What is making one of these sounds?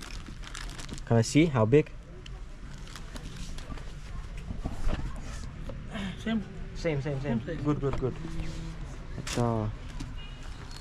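A young man speaks close by, chatting casually.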